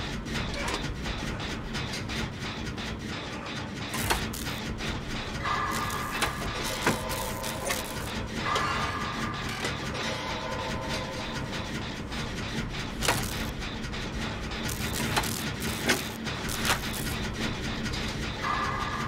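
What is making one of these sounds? A rattling engine clanks and whirs steadily close by.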